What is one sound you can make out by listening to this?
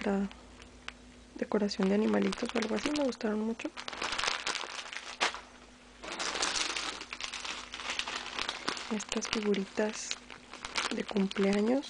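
A plastic bag crinkles as hands squeeze it.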